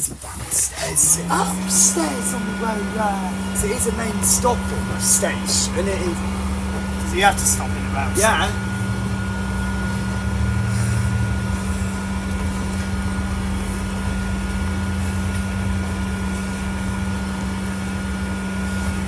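A bus engine hums steadily as the bus drives along a road.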